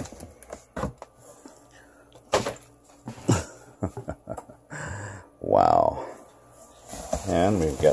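Plastic wrap crinkles around a pack of cans.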